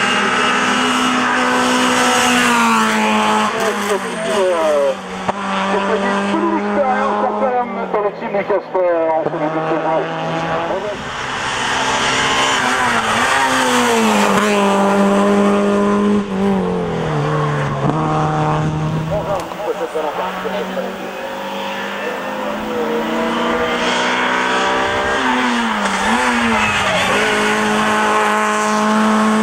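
A rally car engine revs hard and roars, rising and dropping in pitch at each gear change.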